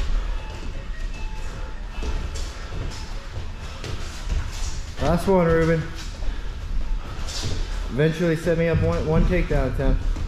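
Bare feet shuffle and thump on a mat.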